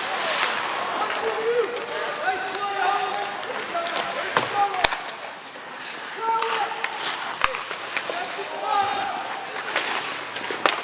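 Spectators shout and cheer in a large echoing arena.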